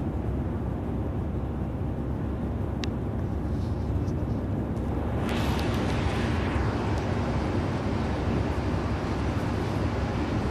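A bus engine rumbles steadily while driving on a highway.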